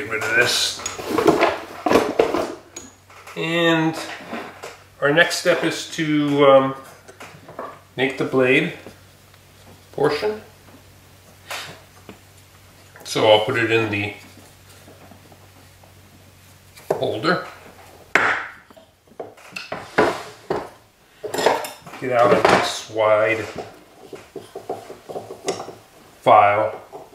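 A man speaks calmly close by, in short phrases.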